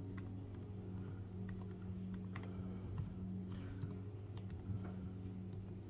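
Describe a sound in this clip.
A finger taps softly on a laptop touchpad.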